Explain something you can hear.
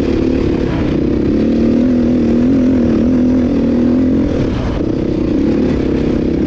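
A dirt bike engine revs loudly up close, rising and falling in pitch.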